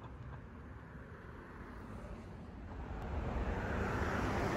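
A car drives closer and louder, its tyres hissing on the road.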